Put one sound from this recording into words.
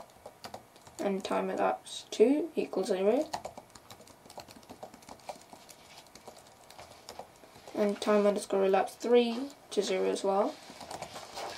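A boy speaks calmly and close to a microphone, in short bursts.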